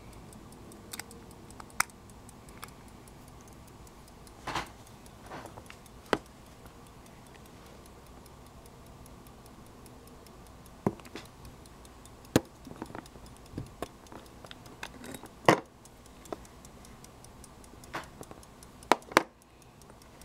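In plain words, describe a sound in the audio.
Small metal clicks and taps come from a watch case being handled and opened.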